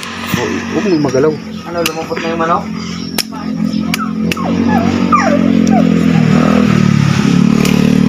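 Hands snap roots apart.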